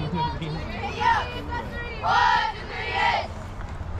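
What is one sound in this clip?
Young women shout and cheer loudly in short bursts.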